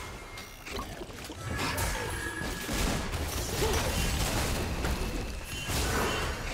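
Video game spells whoosh and clash in a fight.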